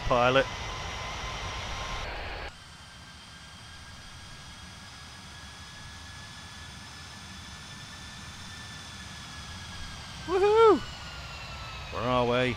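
A jet airliner's engines whine steadily as it flies past.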